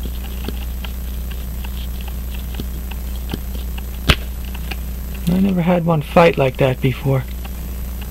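Metal tweezers tick and click lightly against small watch parts.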